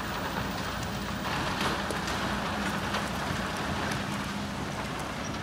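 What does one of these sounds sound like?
Rocks and earth clatter as an excavator bucket digs and dumps.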